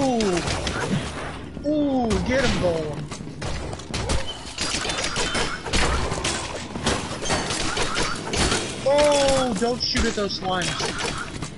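Monsters groan and grunt in low, sliding tones.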